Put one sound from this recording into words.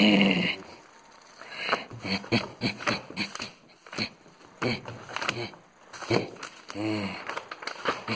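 Pages of a book riffle and rustle under a hand.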